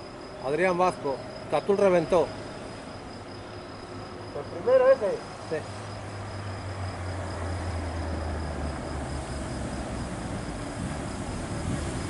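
A bicycle's tyres hum faintly on a road.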